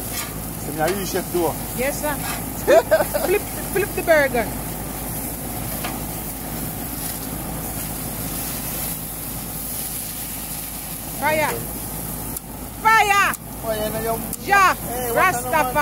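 Burgers sizzle on a hot grill.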